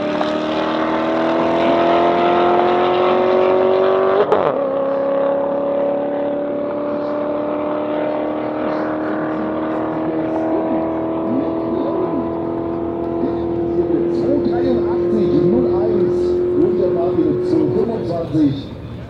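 Two car engines roar at full throttle, shift gear once and slowly fade into the distance.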